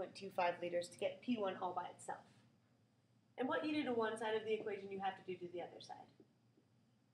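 A woman speaks clearly, explaining, close by.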